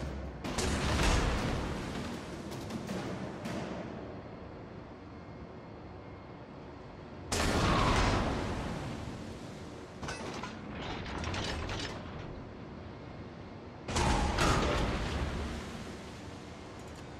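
Heavy naval guns boom loudly.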